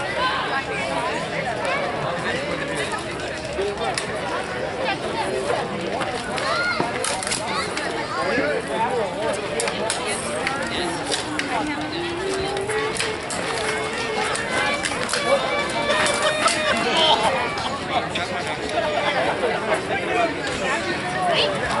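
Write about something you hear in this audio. Wooden weapons clack together as fighters spar.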